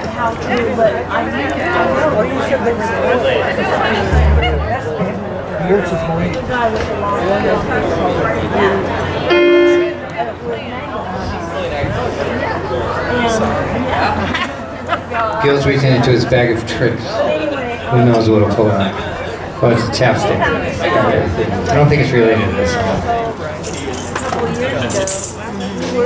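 A live band plays rock music through loudspeakers.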